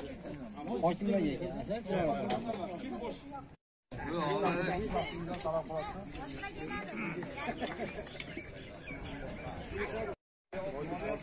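Many men chatter together outdoors.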